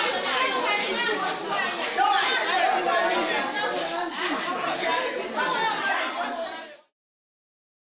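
Several women talk with animation nearby.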